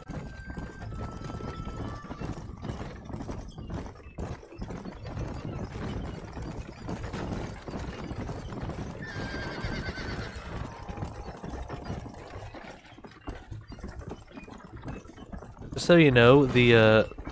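Wooden wagon wheels rattle and creak over rough ground.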